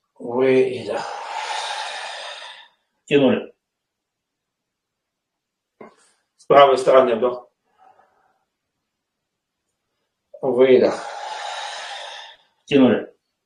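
A man exhales loudly.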